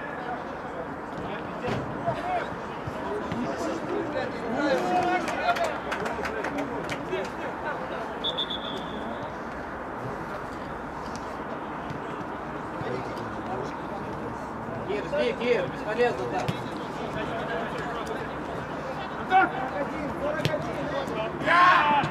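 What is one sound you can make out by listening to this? Players shout to each other across an open pitch outdoors.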